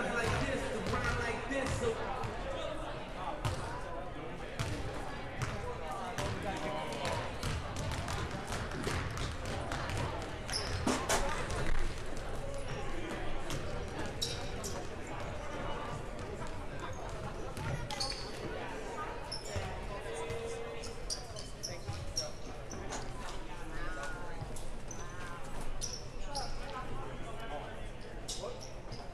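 A crowd of spectators chatters in the stands.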